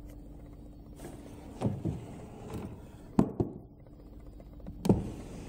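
A wooden drawer scrapes and knocks as it is pulled open.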